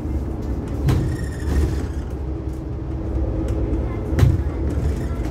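A tram's wheels rattle and knock over the rails.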